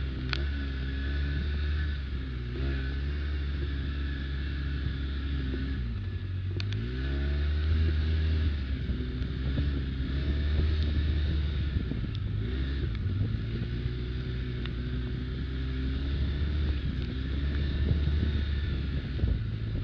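An off-road vehicle's engine rumbles steadily, its pitch rising and falling with the throttle.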